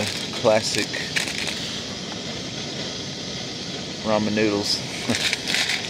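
A plastic food packet crinkles in a man's hands.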